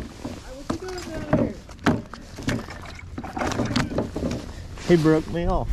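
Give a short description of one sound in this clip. A fish flaps and thumps against wooden boards.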